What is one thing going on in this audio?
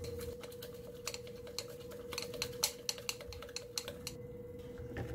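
Ingredients rattle and splash inside a glass container being shaken.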